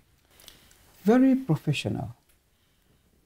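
An elderly woman speaks in a low, tired voice nearby.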